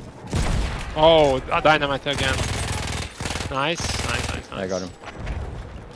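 A man speaks into a headset microphone.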